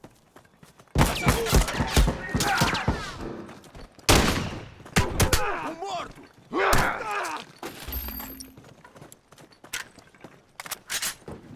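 Gunshots ring out in loud, rapid bursts.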